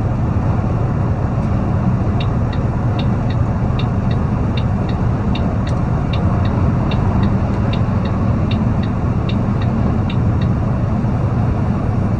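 Tyres roar on the road at highway speed.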